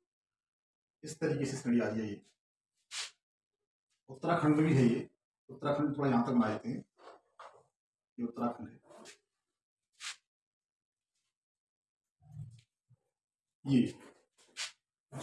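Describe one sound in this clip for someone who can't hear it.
A man speaks calmly, explaining, close to a microphone.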